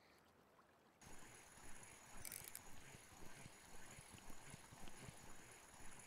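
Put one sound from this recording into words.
A fishing reel whirs as it is wound in.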